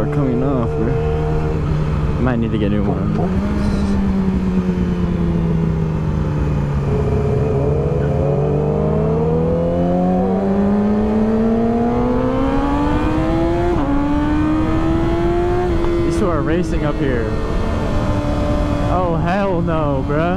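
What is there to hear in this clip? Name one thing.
A motorcycle engine hums loudly, its pitch rising and dropping through gear changes.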